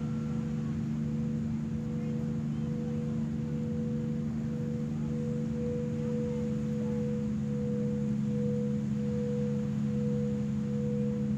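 A singing bowl hums as a striker is rubbed around its rim.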